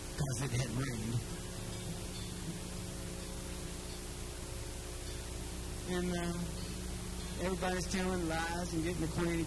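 An acoustic guitar is strummed steadily.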